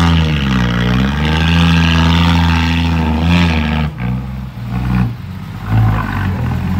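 A diesel truck engine revs loudly, then drops to a lower rumble.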